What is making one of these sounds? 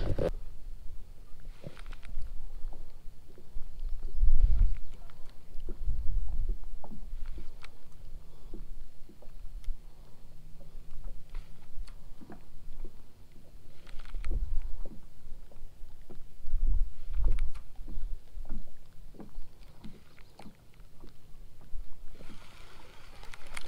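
A baitcasting reel clicks and whirs as line is reeled in.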